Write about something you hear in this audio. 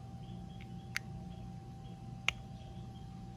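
A metal pin clicks sharply against metal.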